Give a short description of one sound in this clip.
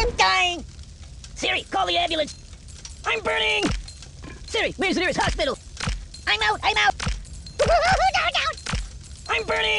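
Coins clink and jingle.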